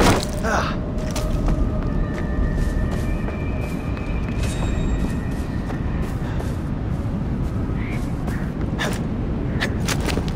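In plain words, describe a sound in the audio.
Footsteps crunch over grass and rock.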